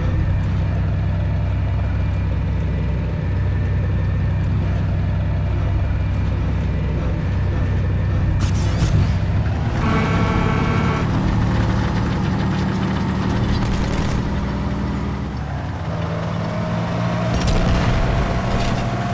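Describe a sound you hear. A heavy tank engine rumbles steadily.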